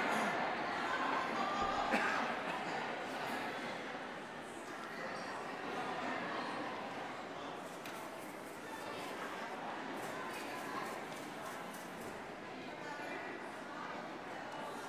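A large choir of women and girls sings together in a big echoing hall.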